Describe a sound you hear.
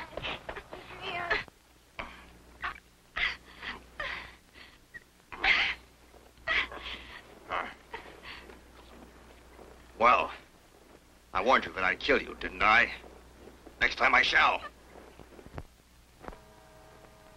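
A man speaks sharply and loudly.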